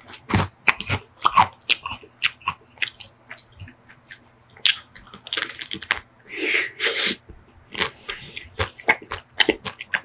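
A crisp chocolate shell cracks and crunches close to a microphone.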